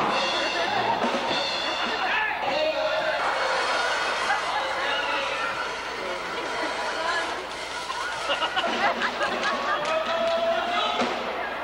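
A man talks with animation over a loudspeaker in a large echoing tent.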